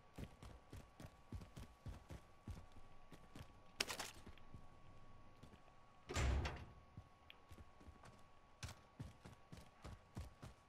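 Footsteps thud quickly and steadily on the ground.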